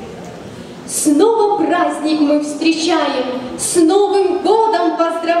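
A young girl sings into a microphone.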